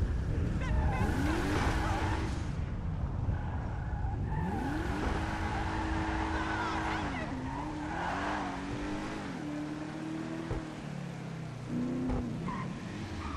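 A car engine revs and hums as the car drives along.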